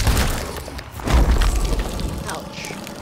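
A loud explosion booms with a deep rumble.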